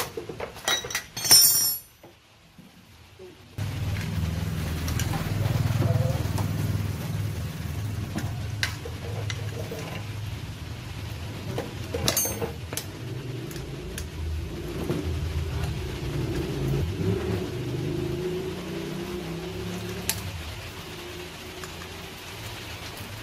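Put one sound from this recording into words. Metal tools clink and scrape against engine parts.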